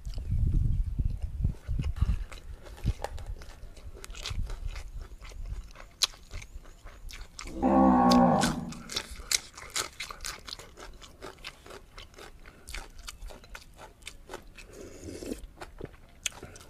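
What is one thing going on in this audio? A man chews and smacks his lips loudly, close by.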